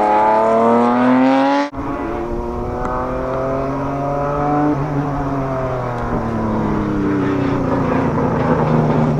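A racing car engine roars loudly, revving up through the gears.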